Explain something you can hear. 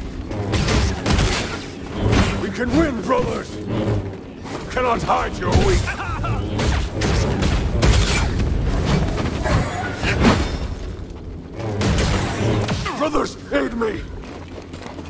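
Energy blades clash with sharp, crackling hits.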